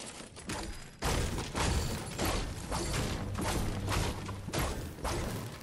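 A pickaxe strikes an ammo box in quick repeated blows.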